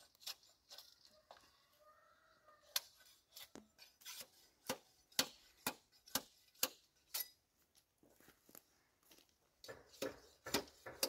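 Bamboo poles knock and clatter against each other.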